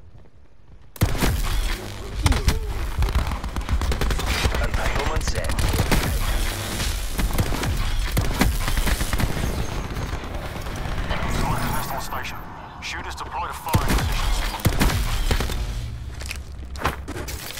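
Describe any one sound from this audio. Automatic rifle gunfire rattles in bursts.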